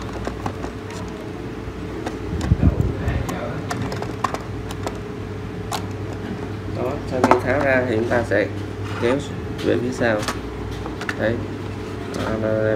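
Hard plastic clicks and knocks as it is handled.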